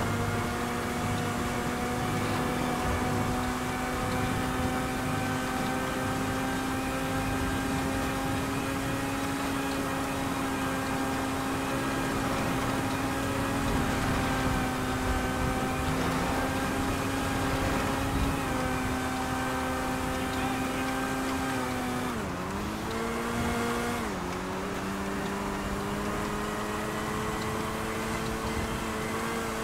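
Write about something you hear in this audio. A vehicle engine drones steadily at high speed, dipping briefly then rising again.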